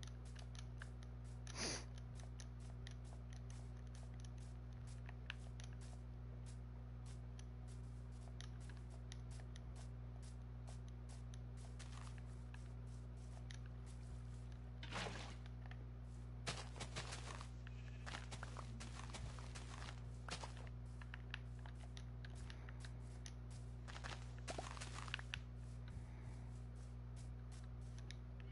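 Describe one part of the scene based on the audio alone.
Footsteps crunch on grass at a steady walking pace.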